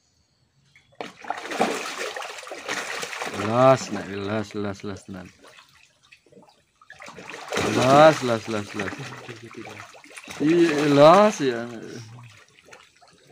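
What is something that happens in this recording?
Catfish thrash and splash in shallow water.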